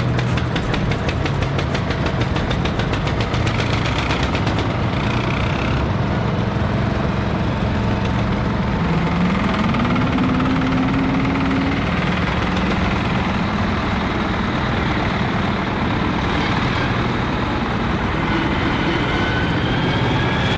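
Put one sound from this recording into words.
Old tractor engines chug and putter loudly as they drive past one after another.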